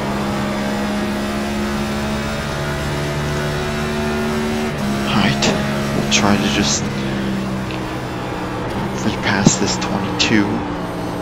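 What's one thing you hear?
A race car engine drones steadily at high speed, shifting pitch as gears change.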